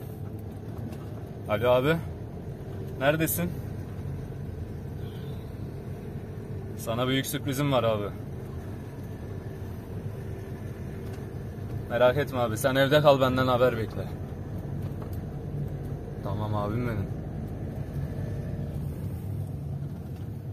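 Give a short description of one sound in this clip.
A vehicle engine hums steadily inside the cabin.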